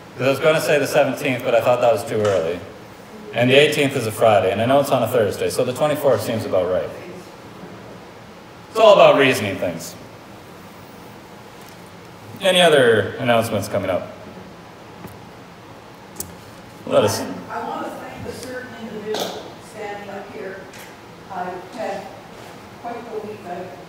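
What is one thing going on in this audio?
A man speaks calmly into a microphone, in pauses, in a room with a slight echo.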